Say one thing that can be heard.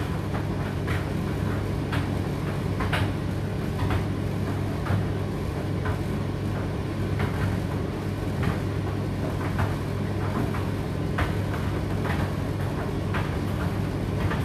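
Clothes thump and tap inside a tumble dryer's drum.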